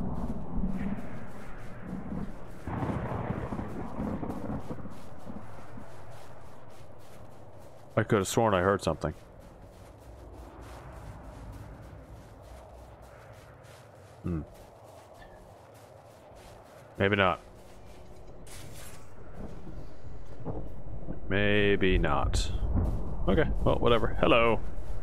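Wind howls and gusts.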